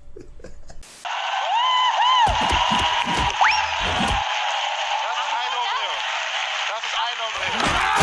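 A studio audience cheers and applauds.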